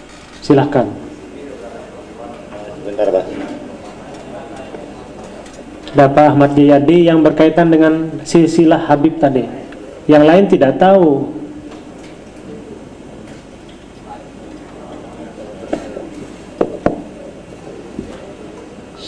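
A man sings loudly into a microphone, with echo.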